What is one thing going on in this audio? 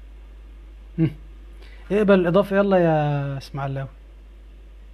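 A young man speaks briefly and calmly, close to the microphone.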